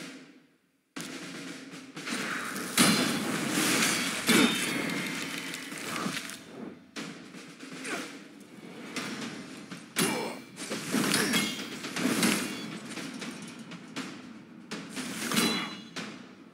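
Magic spell effects whoosh and crackle in short bursts.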